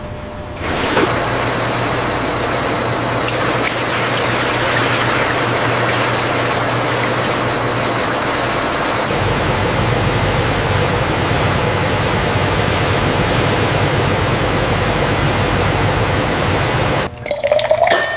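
Wine gushes loudly from a pipe into a vat.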